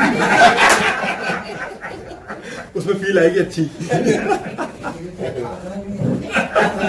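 A middle-aged man laughs heartily close to a microphone.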